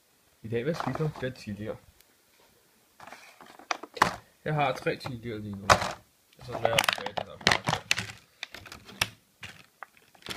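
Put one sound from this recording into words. A plastic container crinkles and clicks close by.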